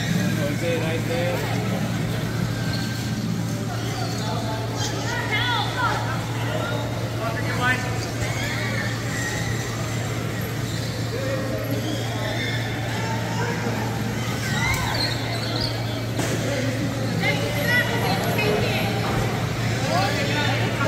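Power wheelchair motors whir in a large echoing hall.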